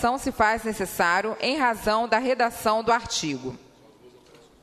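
A young woman speaks steadily into a microphone, then falls silent.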